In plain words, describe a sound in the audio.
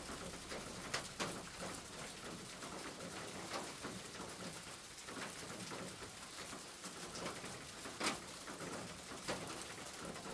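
Car tyres hiss on a wet road.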